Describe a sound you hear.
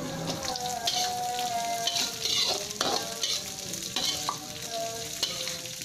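A metal spatula scrapes and stirs food in a metal pan.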